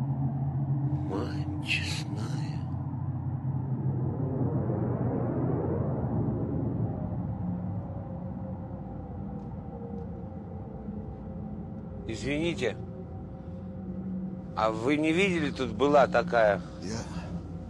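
An elderly man speaks in a low, tense voice, close by.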